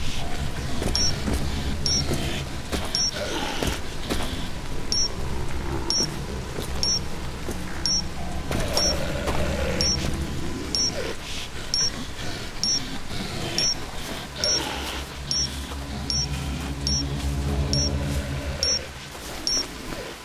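An electric current crackles and buzzes steadily.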